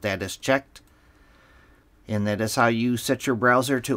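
A computer mouse clicks once.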